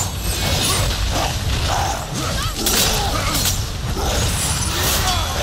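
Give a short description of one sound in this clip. A huge creature growls and roars.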